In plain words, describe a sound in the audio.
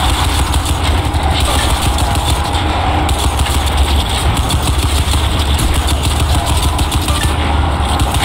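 A heavy machine gun fires in rapid, continuous bursts.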